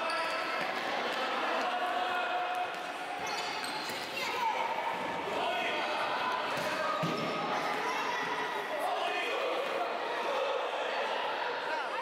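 A futsal ball thuds off players' feet.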